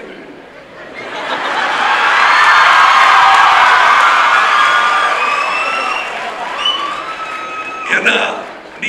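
A crowd cheers and applauds loudly in a large room.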